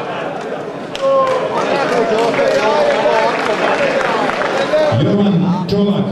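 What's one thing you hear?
A group of men sing together in a large echoing hall.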